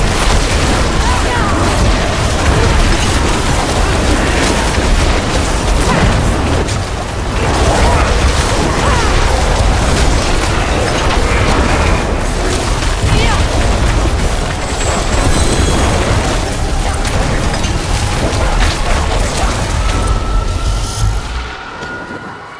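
Crackling electric spell blasts boom and zap.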